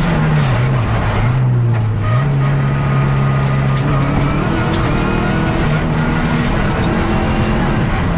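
Tyres rumble and hiss on the road.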